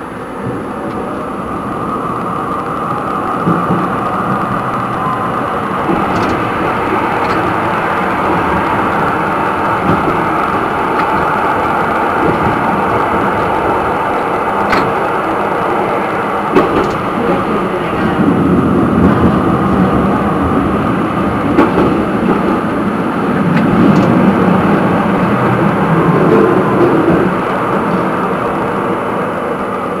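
A tram rumbles steadily along the rails.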